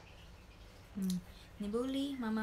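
A young woman speaks softly close to the microphone.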